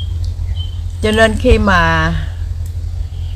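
A middle-aged woman speaks calmly close by.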